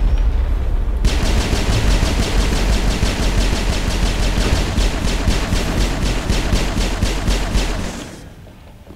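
Rapid gunfire rattles in a long, steady burst.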